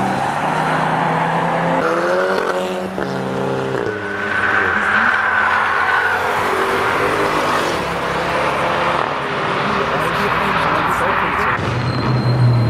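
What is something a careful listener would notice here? Car engines rev loudly and change gear.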